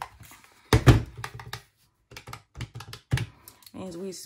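Plastic calculator keys click as fingers tap them.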